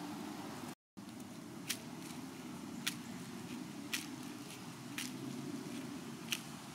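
Dry leaves and pine needles crackle as an animal rolls on the ground.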